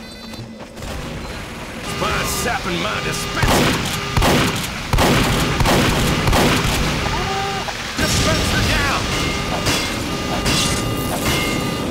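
Sentry guns fire rapid bursts of gunfire.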